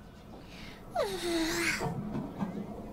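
A kitten meows.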